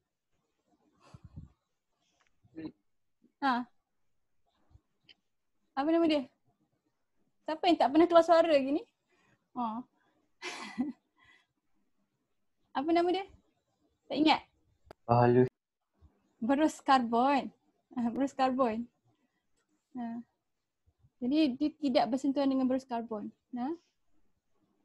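A woman speaks calmly through a microphone on an online call, in short phrases with pauses.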